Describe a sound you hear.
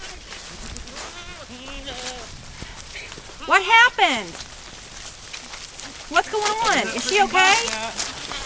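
Goats bleat loudly nearby, outdoors.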